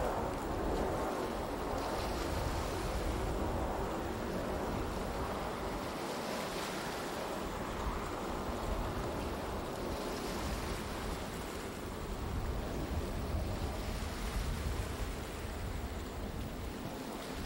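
Water laps and splashes steadily.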